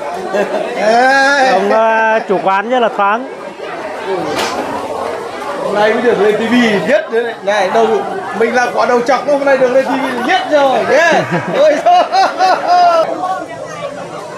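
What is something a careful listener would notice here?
Crowd chatter murmurs outdoors in the background.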